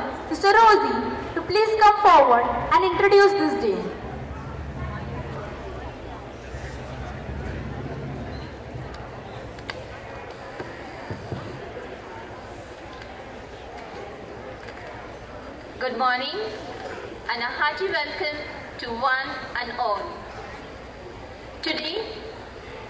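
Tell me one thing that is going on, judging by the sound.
A woman speaks through a microphone and loudspeakers, with a slight echo outdoors.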